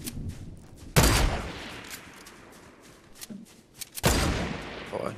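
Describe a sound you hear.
A rifle shot booms and rings out.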